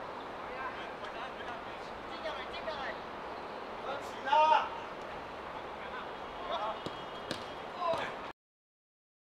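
Men shout and call out to each other across an outdoor pitch.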